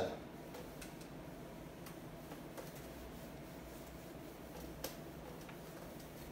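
A cloth eraser rubs across a whiteboard.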